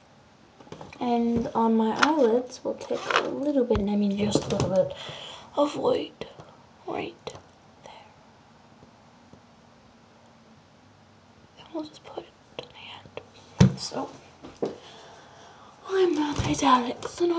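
A woman talks close to the microphone.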